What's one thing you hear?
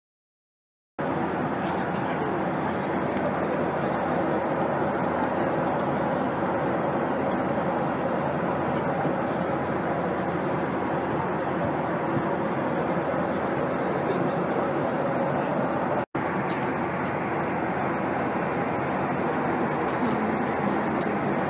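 A plane's engines drone steadily.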